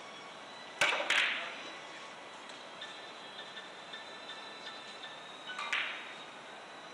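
Billiard balls knock against each other and roll across the table.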